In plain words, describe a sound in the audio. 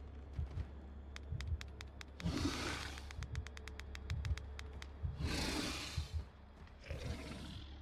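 A handheld detector crackles with rapid clicks.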